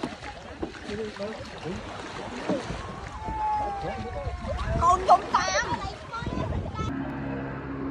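Paddles dip and splash in the water.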